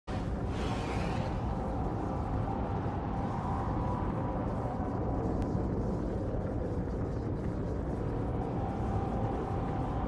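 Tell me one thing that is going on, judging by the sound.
Spaceship engines hum with a low, steady rumble.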